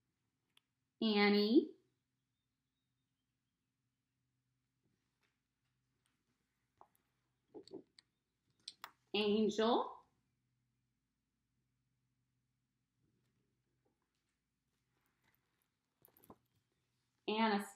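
A woman speaks briefly in short bursts, close by.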